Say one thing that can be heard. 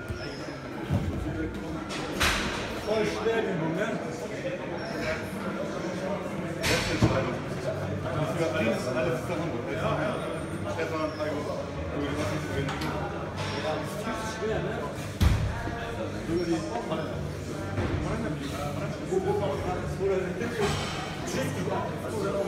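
Men talk nearby in a room with a bit of echo.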